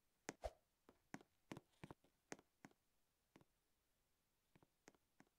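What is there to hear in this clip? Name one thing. A game character's footsteps patter across a hard floor.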